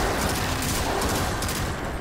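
A rifle fires a shot.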